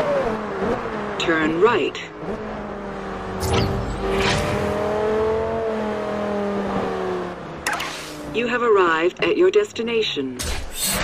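Tyres screech as a car skids around corners.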